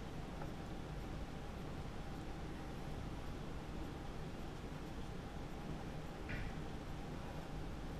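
A felt marker scratches softly across paper.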